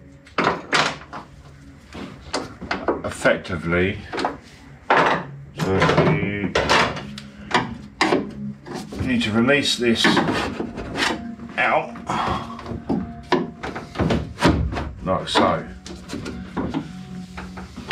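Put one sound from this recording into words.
A tool clicks and scrapes against a metal car door.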